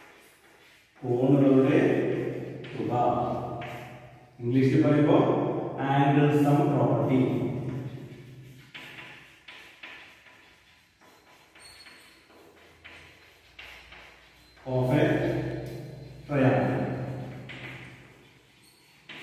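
A middle-aged man explains loudly and steadily, close by.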